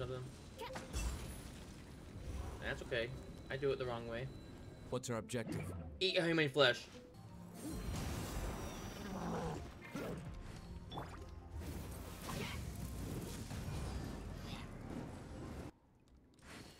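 Game sound effects of attacks and bursts ring out.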